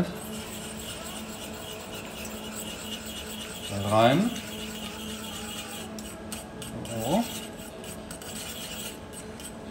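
A wire whisk scrapes and clinks against a metal saucepan.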